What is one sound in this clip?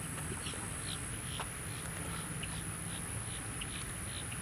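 A bird wades through shallow water.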